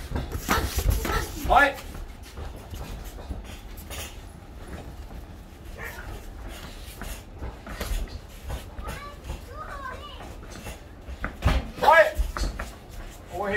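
Boxing gloves thud against pads and bodies in quick bursts.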